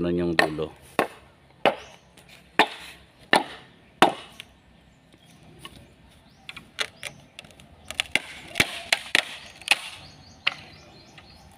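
A machete chops bamboo with sharp, hollow knocks.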